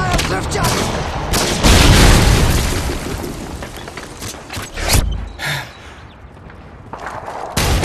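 Gunfire rattles in short bursts.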